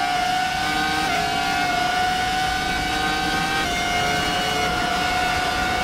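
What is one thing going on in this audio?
A racing car engine screams at a high, steady pitch, dipping slightly with each gear change.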